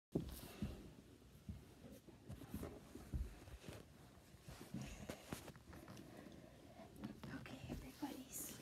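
Small plastic toys knock and rattle against a hard surface close by.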